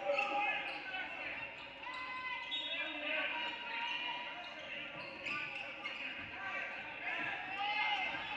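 Young players shout to each other in a gym that echoes.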